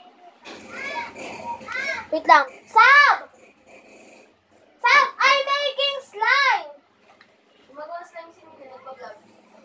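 A young girl speaks in a high, animated voice close by.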